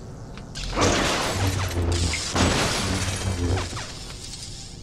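Objects smash and burst apart with a crash.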